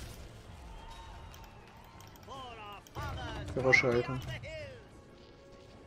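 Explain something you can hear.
Fantasy battle sound effects clash and burst, with magical whooshes.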